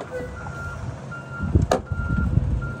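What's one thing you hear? A hand slaps against a truck's metal door with a dull thud.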